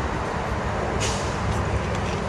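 A plastic soda bottle cap is twisted open with a short hiss.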